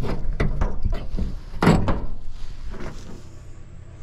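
A metal hood creaks and clanks open.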